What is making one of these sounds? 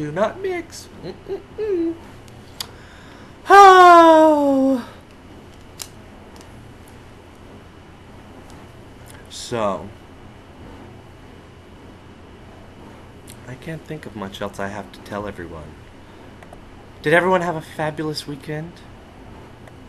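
A young man talks close to the microphone, with animated pauses.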